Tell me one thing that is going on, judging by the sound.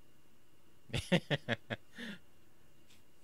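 A man laughs in short bursts close to a microphone.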